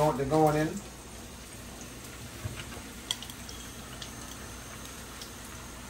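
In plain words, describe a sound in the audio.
Carrots sizzle softly in hot oil in a pan.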